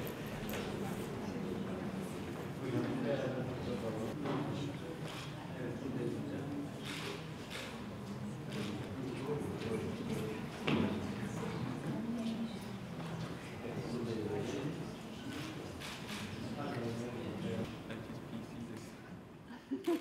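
A woman speaks into a microphone over a loudspeaker in a hall.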